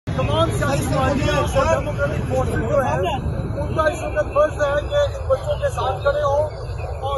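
A middle-aged man speaks steadily into microphones close by, outdoors.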